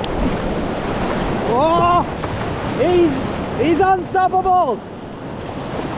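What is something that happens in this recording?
A paddle splashes through the water.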